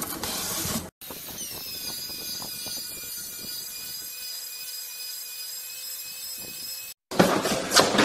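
An electric floor sander hums steadily as it spins.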